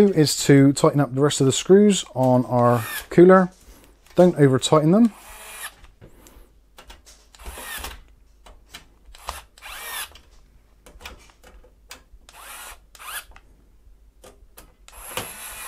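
A screwdriver scrapes and clicks as it turns screws.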